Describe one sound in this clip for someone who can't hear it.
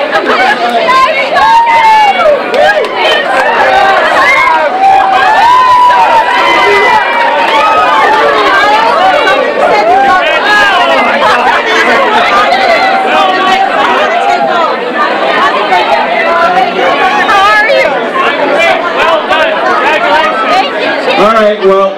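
A crowd of men and women chatter and cheer loudly indoors.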